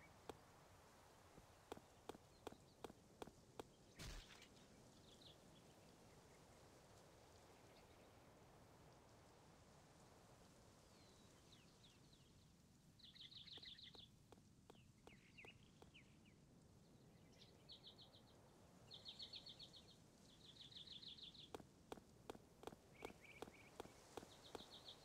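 Footsteps tap quickly on a dirt path.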